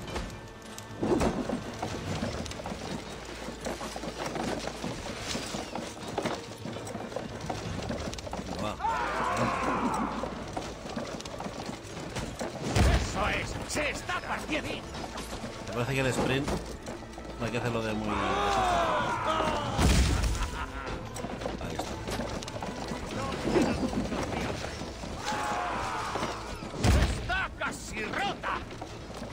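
A cart's wooden wheels rumble over stone.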